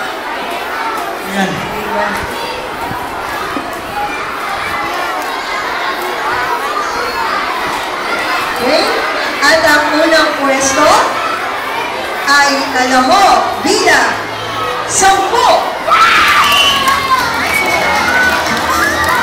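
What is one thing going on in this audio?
A crowd of children chatters noisily outdoors.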